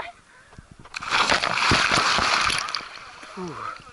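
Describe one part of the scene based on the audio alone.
Water churns and gurgles close by.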